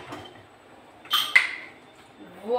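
A pressure cooker lid clanks as it is opened.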